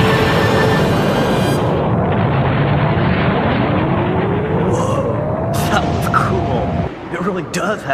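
A huge explosion roars loudly and rumbles on.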